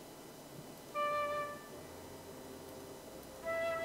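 A recorder plays a few soft notes.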